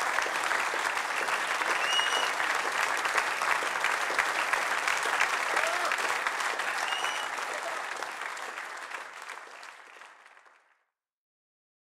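An audience applauds loudly in a large hall, then fades away.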